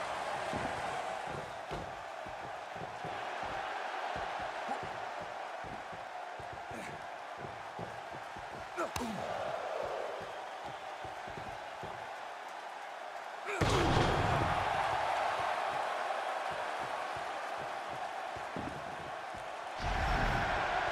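A crowd cheers steadily in a large echoing arena.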